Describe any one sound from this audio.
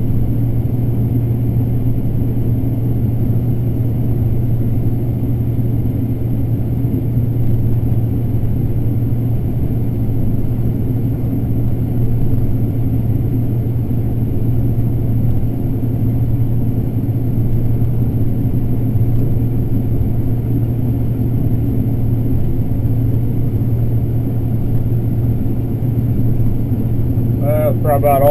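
A combine harvester drones as it harvests corn, heard from inside the cab.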